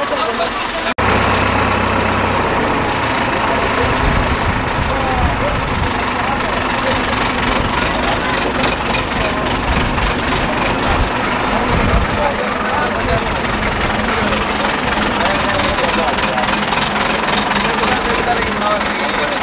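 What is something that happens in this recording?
A heavy diesel engine idles and rumbles steadily.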